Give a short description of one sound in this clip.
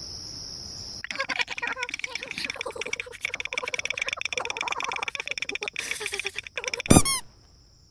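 A cartoon character's teeth chatter rapidly while shivering.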